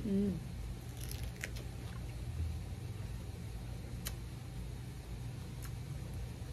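A young woman bites and crunches on a crisp crepe.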